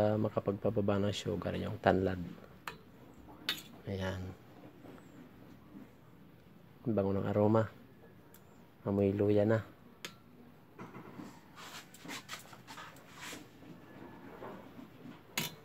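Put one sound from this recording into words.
A ladle clinks and scrapes against a metal pot.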